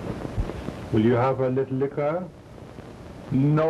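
A man speaks sternly nearby.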